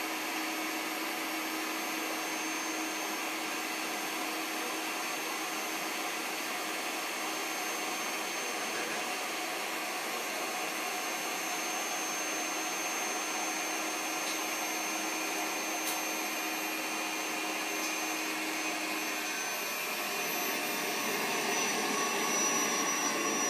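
Air rushes out steadily as a large inflatable slowly deflates.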